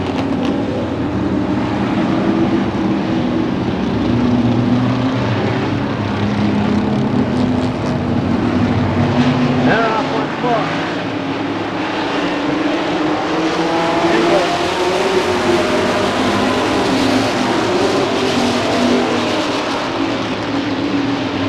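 Many race car engines roar and drone loudly outdoors.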